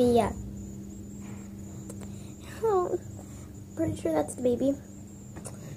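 A young girl speaks close by in short excited bursts.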